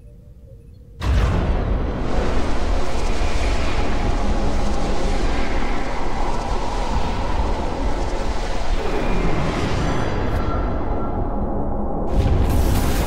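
A powerful energy beam roars loudly.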